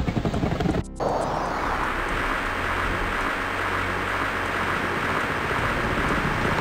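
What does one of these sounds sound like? An explosion booms and rumbles on with a steady roar.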